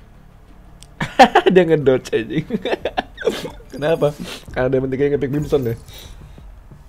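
A young man speaks with animation and laughs into a close microphone.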